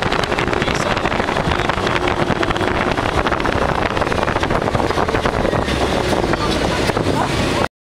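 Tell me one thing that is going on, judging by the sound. A motor vehicle rumbles along a road at speed.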